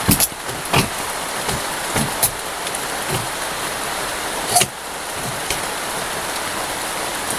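A swollen river rushes steadily nearby.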